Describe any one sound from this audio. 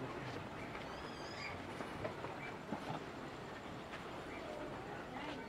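A wooden hand-cranked wheel creaks and knocks as it turns.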